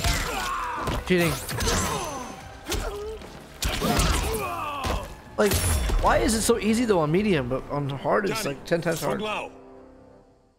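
Blows and blade strikes thud and clang in a fight.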